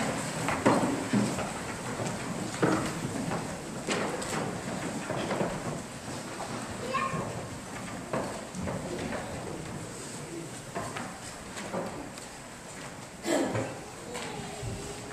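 A man speaks quietly at a distance in a large echoing hall.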